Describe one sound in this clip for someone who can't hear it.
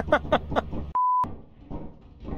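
A steady test tone beeps briefly.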